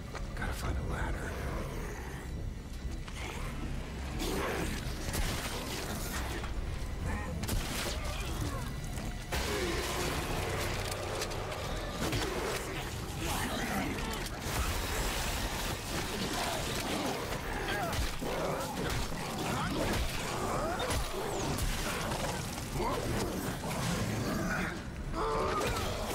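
A woman talks into a microphone with animation.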